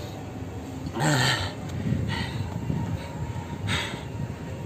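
A young man pants heavily after exercise.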